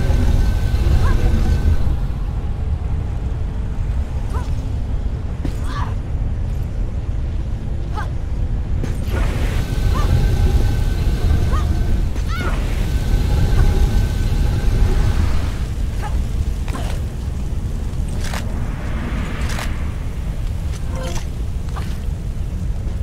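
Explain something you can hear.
A low rumble echoes steadily through a cave.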